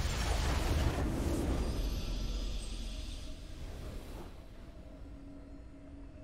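A triumphant game fanfare plays and fades.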